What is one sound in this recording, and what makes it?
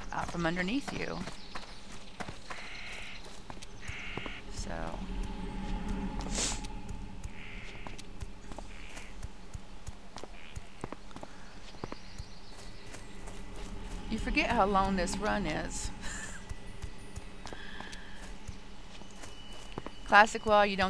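Footsteps tread steadily along a stone path.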